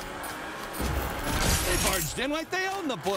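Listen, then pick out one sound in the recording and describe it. An explosion bursts with a crash of shattering debris.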